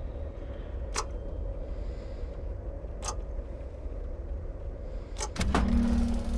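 Buttons click as they are pressed on a metal box.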